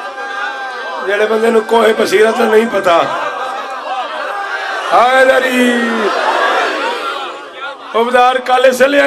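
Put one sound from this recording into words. A crowd of men chants together in rhythm.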